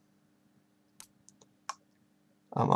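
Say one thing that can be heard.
A game menu makes short soft clicks as the selection moves.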